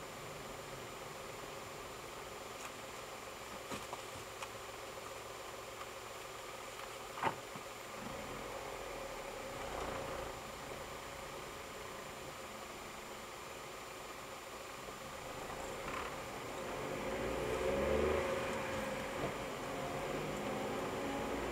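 A car engine hums steadily, rising as the car speeds up.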